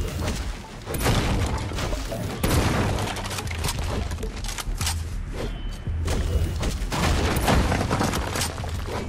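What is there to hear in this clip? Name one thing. A pickaxe strikes and breaks objects with sharp thuds.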